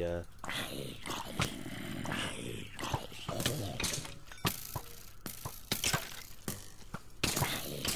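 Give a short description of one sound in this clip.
A sword strikes a creature with repeated sharp hits.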